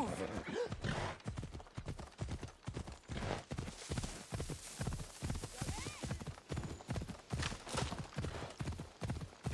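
Horse hooves gallop in a fast, steady rhythm.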